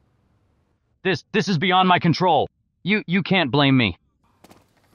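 A man speaks pleadingly, close by.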